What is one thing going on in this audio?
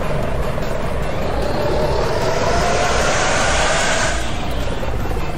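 A bus engine revs up with a rising whine as the bus pulls away.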